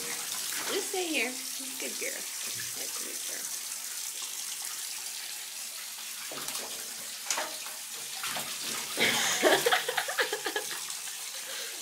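Small claws scrabble and patter on a hard, slick tub surface.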